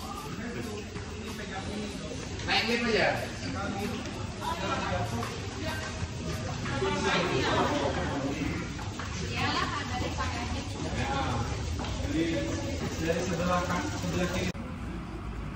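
A crowd of people chatter in an echoing underground passage.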